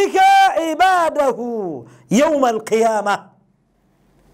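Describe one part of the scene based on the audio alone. A man chants in a strong, melodic voice close to a microphone.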